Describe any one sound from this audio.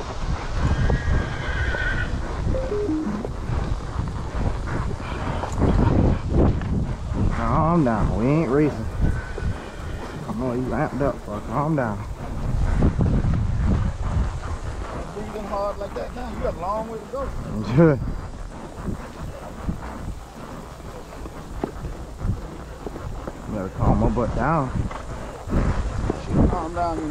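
Horse hooves thud steadily on a dirt path.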